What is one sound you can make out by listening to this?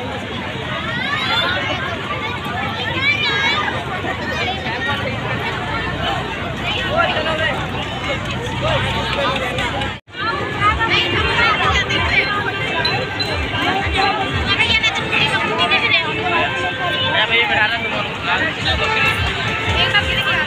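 A large outdoor crowd chatters and murmurs all around.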